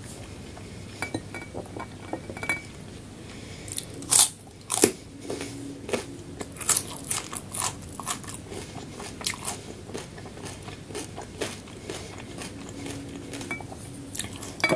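A woman chews food with wet mouth sounds close to a microphone.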